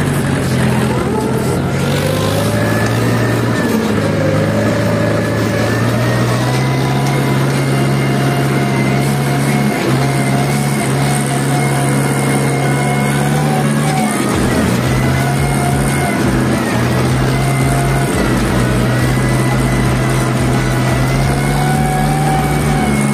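A rotary tiller churns through soil.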